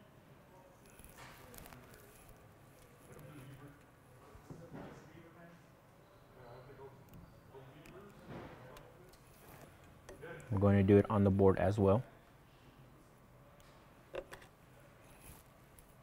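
A wire stripper clicks and snips faintly as it grips a wire.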